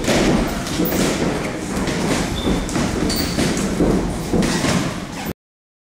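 Boxing gloves thud against gloves and pads.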